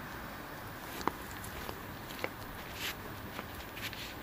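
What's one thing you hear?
Footsteps pass close by.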